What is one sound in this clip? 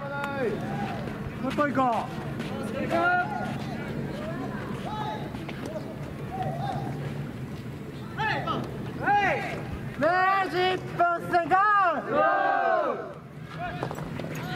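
Young men shout loudly outdoors.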